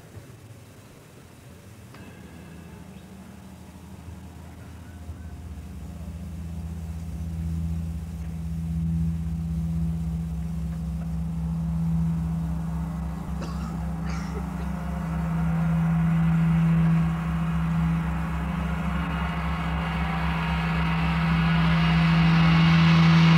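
A large gong hums and swells steadily louder as it is struck softly with a mallet.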